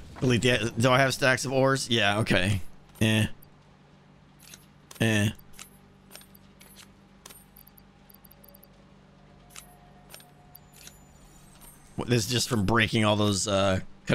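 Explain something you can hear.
A man speaks calmly and closely into a microphone, in short bursts with pauses.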